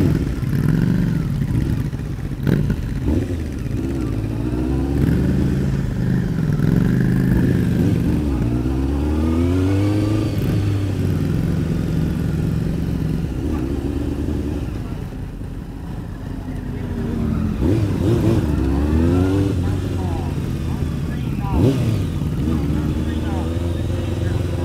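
A motorcycle engine rumbles up close, revving up and down as it rolls along.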